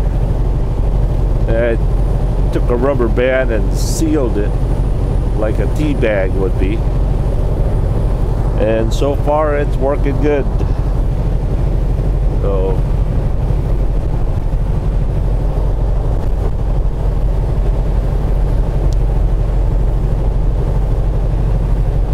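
A truck engine rumbles steadily while driving at speed.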